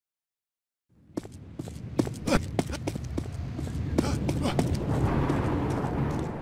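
Footsteps tread on a hard concrete floor.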